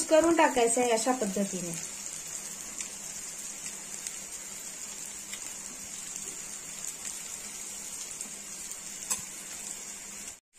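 Chunks of potato drop into a frying pan with soft thuds.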